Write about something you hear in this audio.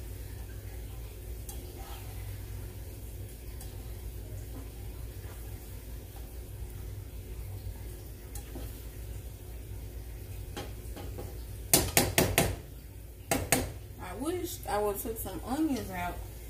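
A spatula scrapes and knocks against a frying pan.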